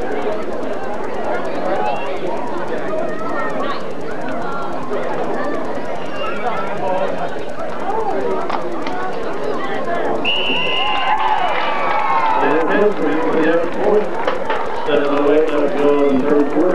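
A crowd of people talks and shouts outdoors.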